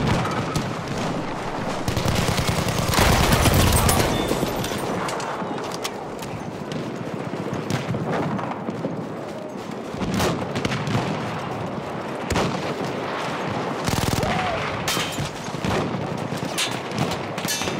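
Gunfire cracks and booms all around in a battle.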